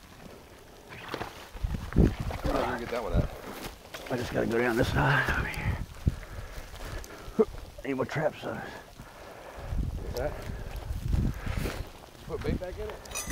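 Footsteps crunch and rustle through dry grass and leaves.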